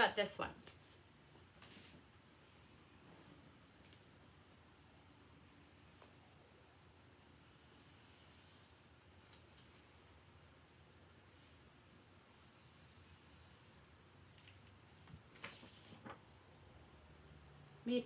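Paper rustles softly as it is folded.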